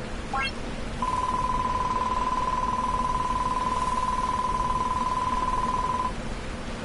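A rapid electronic blipping plays as dialogue text prints out.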